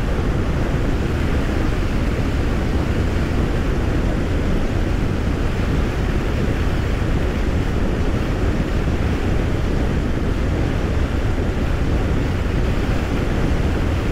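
Wind roars loudly against a microphone.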